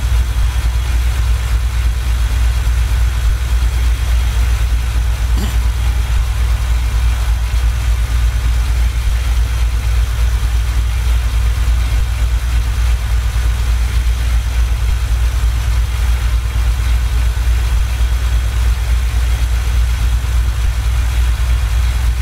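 A truck engine drones steadily with a deep rumble.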